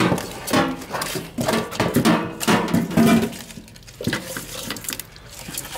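A hand squelches and rubs wet food in a metal pot.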